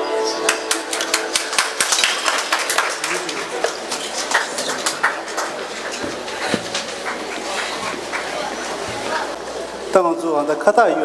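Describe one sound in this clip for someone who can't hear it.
Lively music with a quick beat plays through loudspeakers in a large echoing hall.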